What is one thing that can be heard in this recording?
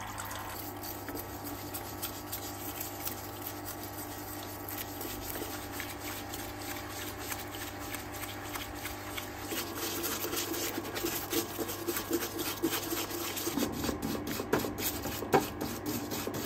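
A stiff brush scrubs metal in soapy liquid.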